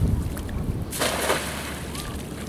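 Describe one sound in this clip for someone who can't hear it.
A cast net lands on the water with a splash.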